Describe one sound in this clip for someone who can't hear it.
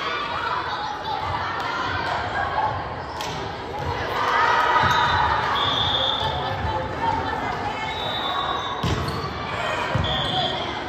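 A crowd of spectators murmurs and cheers in a large echoing gym.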